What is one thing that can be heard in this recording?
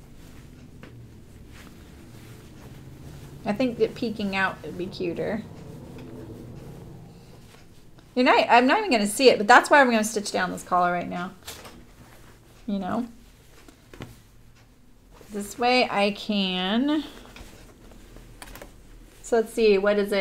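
Fabric rustles as hands handle it.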